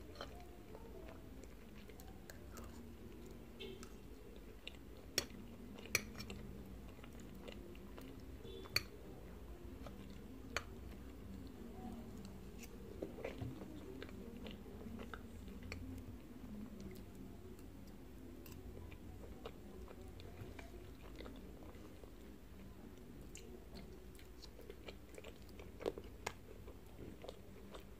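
A young woman chews soft food close to a microphone.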